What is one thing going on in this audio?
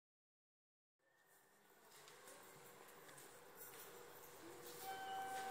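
A steady hum fills a large indoor hall.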